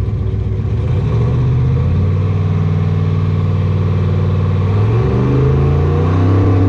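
A race car engine revs higher and rises in pitch.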